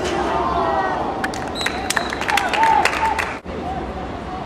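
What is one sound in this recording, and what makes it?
Young men shout to each other across an open playing field.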